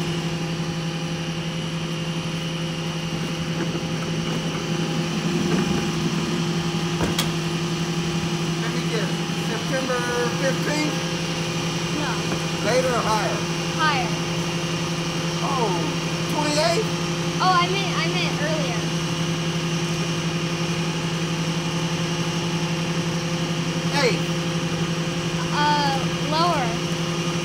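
A garbage truck engine idles with a steady hum.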